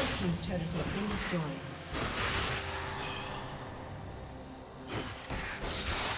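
Fantasy battle sound effects whoosh and crackle as spells hit.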